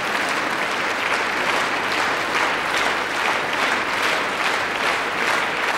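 An audience claps in rhythm, in unison.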